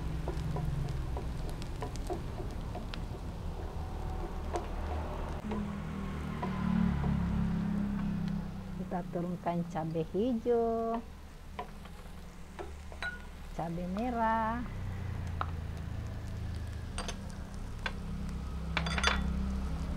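A wooden spatula scrapes and taps in a frying pan.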